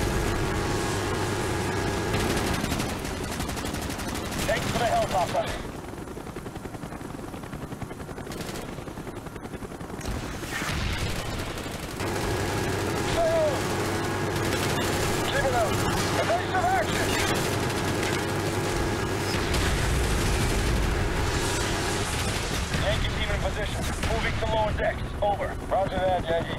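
A helicopter's rotor drones steadily.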